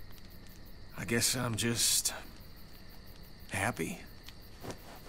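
A man speaks softly and warmly, his voice a little rough.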